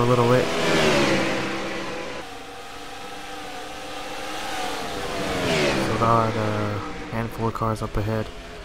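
Racing car engines roar and whine as the cars speed past.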